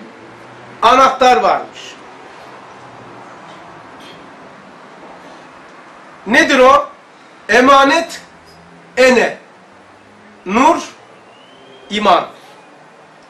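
An elderly man reads aloud slowly in short phrases, close by.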